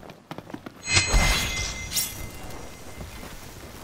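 A sharp blow strikes a guard in a short scuffle.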